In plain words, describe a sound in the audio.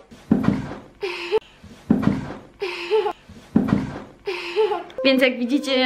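A little girl squeals happily.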